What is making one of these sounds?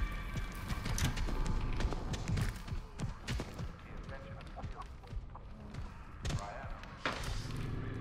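Footsteps hurry across a wooden floor.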